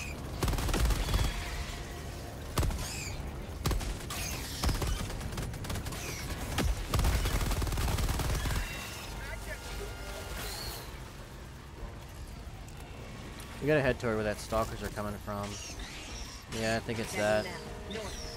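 Gunfire rattles in bursts.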